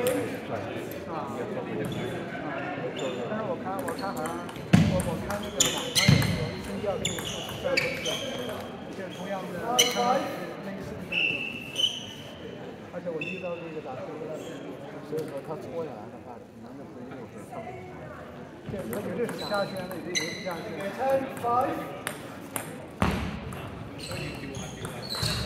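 The room echoes like a large hall.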